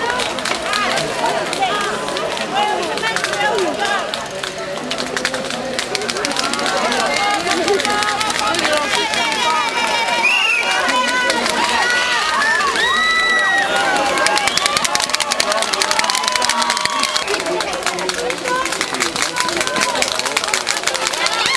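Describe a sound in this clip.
Spectators clap their hands rapidly.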